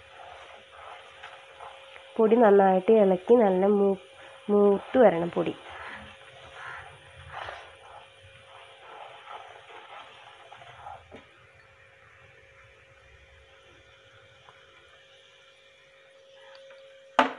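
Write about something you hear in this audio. A wooden spatula stirs and scrapes through a thick sauce in a pot.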